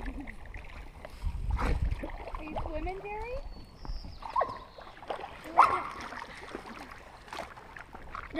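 A paddle dips and splashes in calm water.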